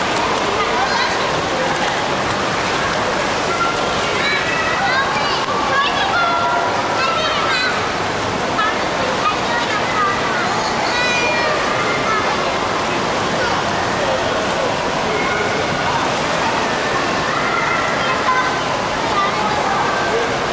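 A woman talks to a toddler.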